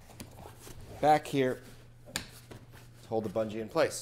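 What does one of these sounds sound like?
A zipper rasps open along a fabric case.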